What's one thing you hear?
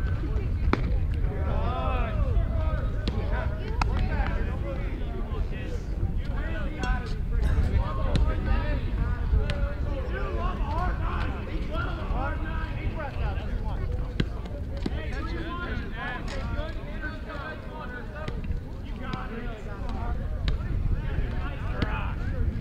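Young men chatter and shout encouragement from a dugout nearby.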